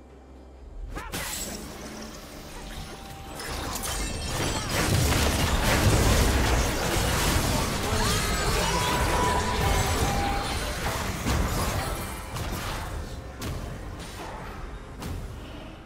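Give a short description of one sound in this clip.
Game spell effects and impacts crash and whoosh in a fast fight.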